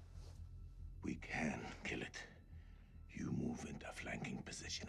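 A man speaks quietly and urgently.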